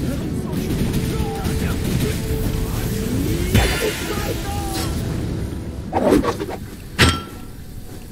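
Magic spells crackle and boom in a fast fight.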